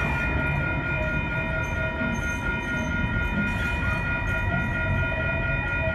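A light-rail train rumbles slowly past, echoing under a concrete roof.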